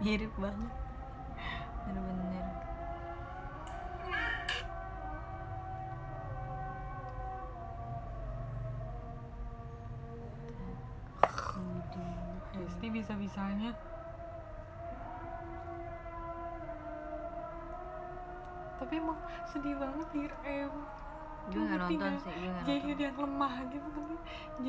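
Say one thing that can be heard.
A second young woman laughs softly.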